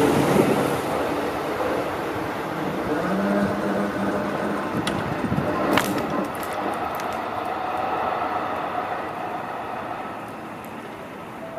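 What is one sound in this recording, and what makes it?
A train rolls slowly along the tracks with a low hum.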